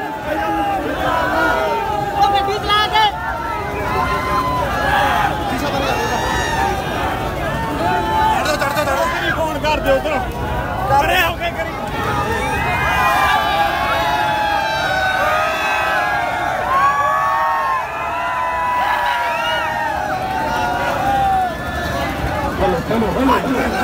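Many men shout excitedly close by.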